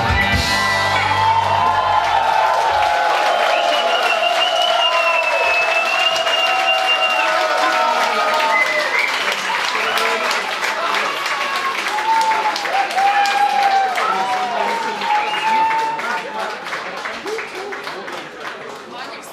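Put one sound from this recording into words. A crowd cheers loudly in a large echoing room.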